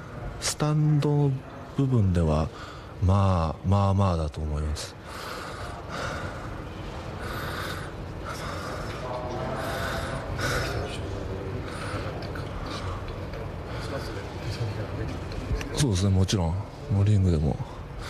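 A man speaks into a microphone close by, in short halting bursts.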